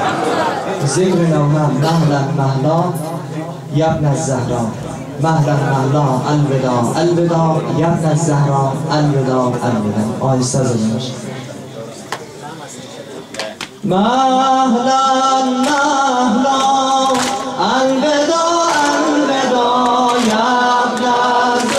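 A man sings a mournful chant through a loudspeaker.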